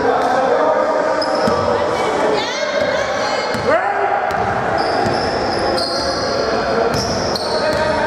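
A basketball bounces as a player dribbles.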